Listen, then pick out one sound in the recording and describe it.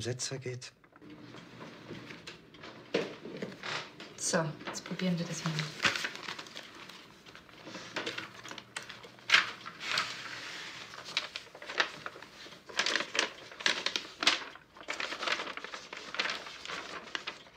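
Paper crinkles and rustles, close by.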